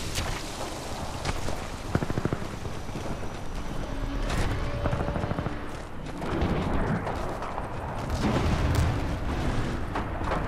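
Footsteps crunch over dry ground and grass.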